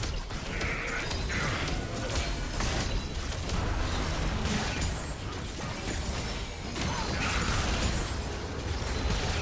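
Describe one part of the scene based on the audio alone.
Spell effects whoosh and crackle as game characters fight.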